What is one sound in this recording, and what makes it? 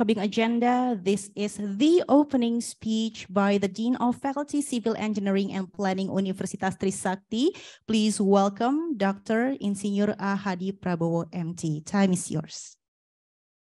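A woman speaks with animation into a microphone.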